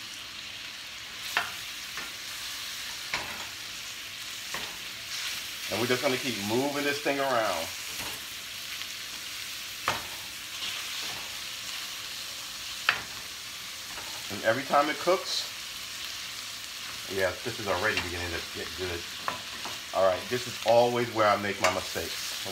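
Meat sizzles softly in a frying pan.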